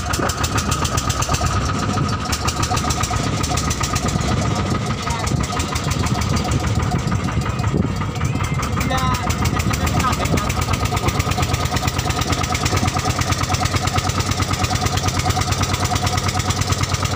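Water splashes against the hull of a moving boat.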